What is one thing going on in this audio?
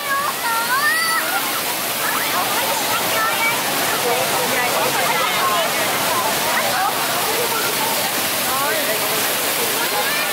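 Fountain jets splash and spray water onto wet pavement.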